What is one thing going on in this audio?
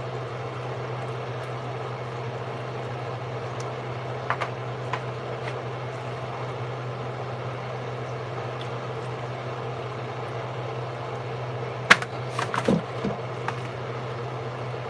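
Hands squish and rub wet pieces of meat in a bowl.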